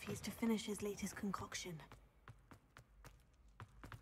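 Footsteps tap quickly on a hard stone floor.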